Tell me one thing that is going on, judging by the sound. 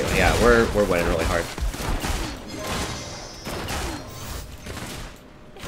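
Spell effects whoosh and crackle in a fast-paced fight.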